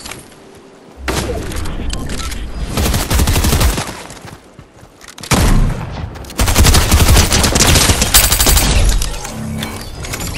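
Gunfire rattles in loud bursts.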